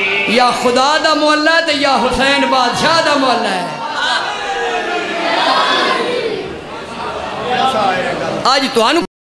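A middle-aged man recites loudly and with emotion into a microphone, heard through loudspeakers.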